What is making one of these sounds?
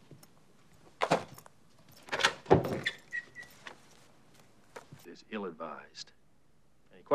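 A young man speaks with a mocking tone, close by.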